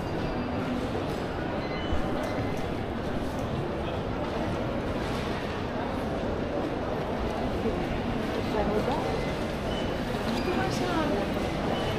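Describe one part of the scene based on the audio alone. A crowd of travellers murmurs in a large echoing hall.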